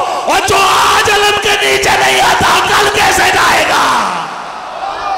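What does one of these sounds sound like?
A man shouts with passion through a microphone, echoing loudly.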